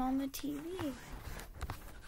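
A young woman speaks briefly in a high, sing-song voice close to the microphone.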